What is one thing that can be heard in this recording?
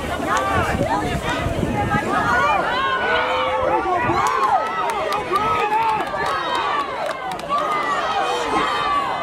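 A crowd of spectators cheers and yells excitedly nearby.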